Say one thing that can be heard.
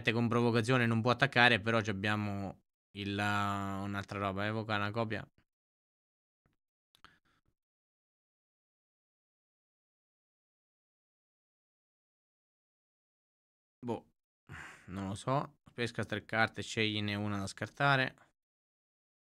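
A man talks with animation into a close microphone, pausing at times.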